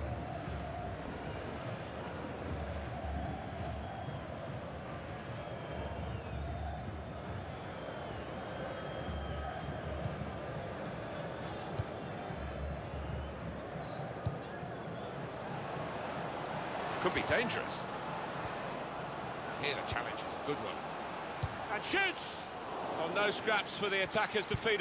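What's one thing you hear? A large stadium crowd murmurs and chants.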